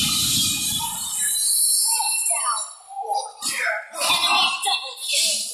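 Game hits clash and thud sharply.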